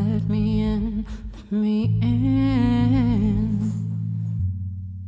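A man sings into a microphone over a band's closing chord.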